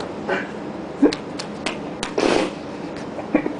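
A hand slaps and rubs on a concrete floor close by.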